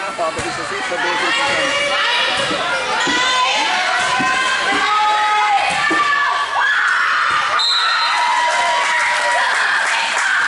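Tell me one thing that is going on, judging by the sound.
Girls shout and call out to each other in a large echoing gym.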